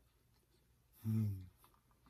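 A young man hums with pleasure.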